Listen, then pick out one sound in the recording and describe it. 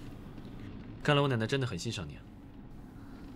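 A young man speaks calmly and warmly, close by.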